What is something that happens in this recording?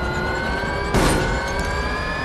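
A racing car bumps hard against a barrier.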